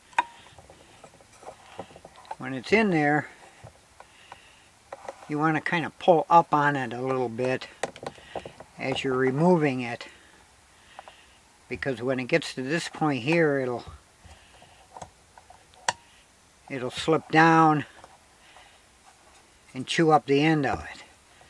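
A wooden dowel rubs and knocks lightly against wood.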